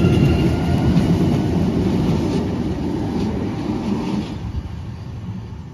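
A tram rolls away into the distance and fades.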